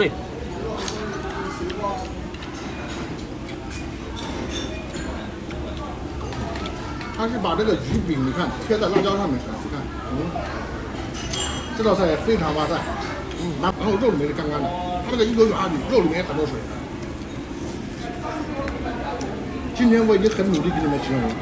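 A young man chews and smacks his lips while eating.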